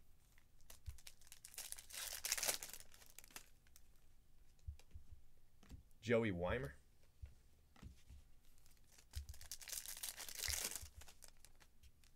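A foil wrapper crinkles and tears between hands.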